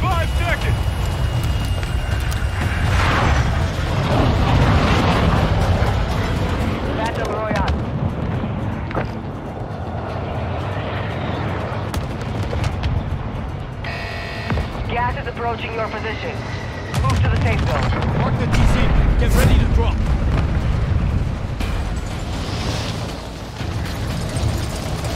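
Aircraft engines drone with a deep, steady rumble.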